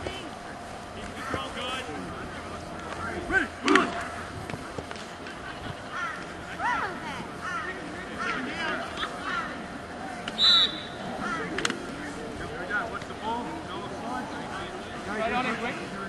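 Several young players shout and chant with excitement outdoors.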